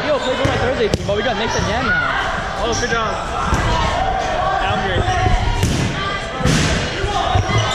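A ball bounces on a wooden gym floor.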